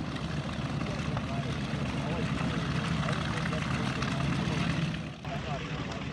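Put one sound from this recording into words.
A large propeller plane's engines roar loudly as it takes off.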